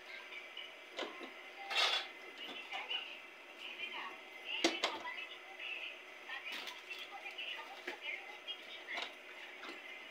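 Metal pots and dishes clatter and knock together.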